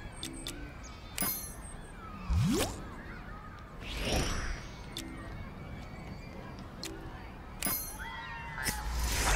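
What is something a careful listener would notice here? Short game menu clicks sound several times.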